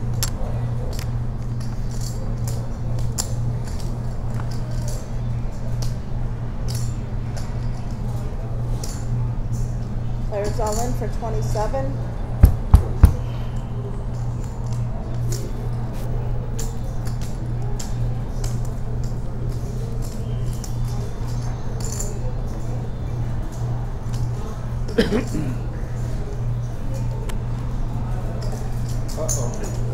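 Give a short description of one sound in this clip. Poker chips click and clatter on a table.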